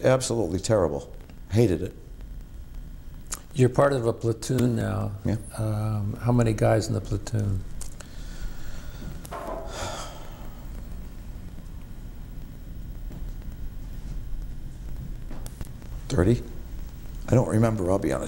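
A middle-aged man speaks calmly and close to a microphone, with pauses.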